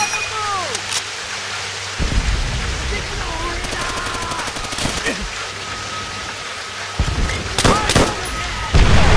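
Gunfire cracks and booms nearby.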